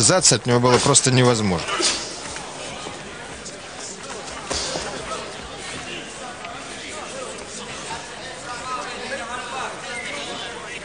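A crowd murmurs and cheers in a large arena.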